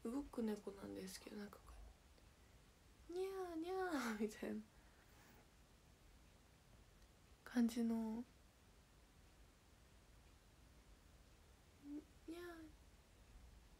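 A young woman speaks close to a microphone in short bursts, with pauses between.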